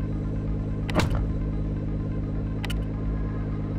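A menu button clicks sharply.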